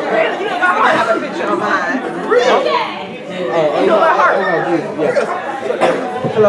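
Several men and women chat nearby in a large echoing hall.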